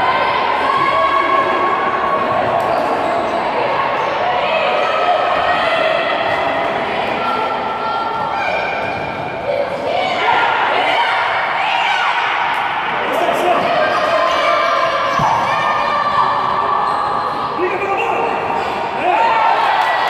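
A crowd of spectators cheers and chants in an echoing hall.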